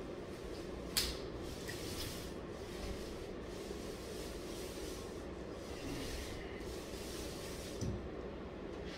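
A scraper rasps steadily against a ceiling.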